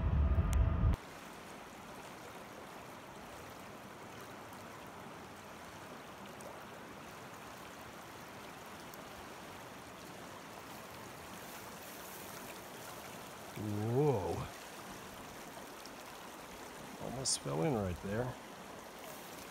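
A river rushes steadily over rapids.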